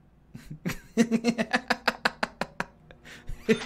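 A man laughs into a close microphone.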